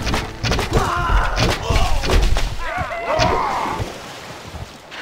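Soldiers clash loudly in battle.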